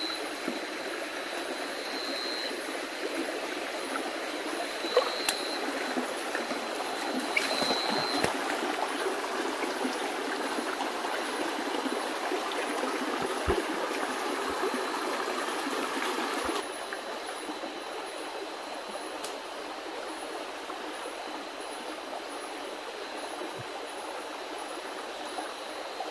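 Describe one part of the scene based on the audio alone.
Shallow water trickles and burbles steadily over stones.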